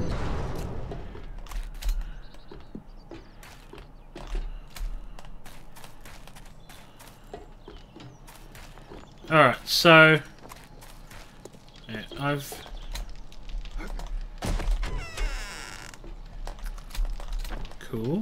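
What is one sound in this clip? Footsteps crunch on gravel and hard ground.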